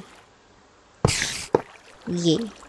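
A block is set down with a short, crunching thud.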